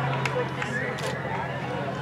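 A hockey stick cracks against a ball.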